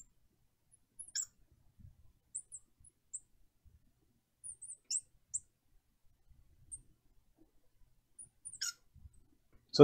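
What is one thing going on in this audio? A marker squeaks faintly on glass.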